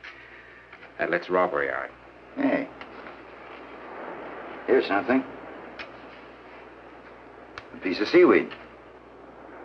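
A second man answers quietly close by.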